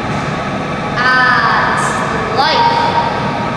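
A boy speaks in a relaxed voice.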